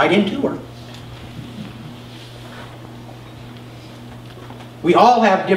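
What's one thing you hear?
A middle-aged man speaks calmly into a microphone in a large echoing room.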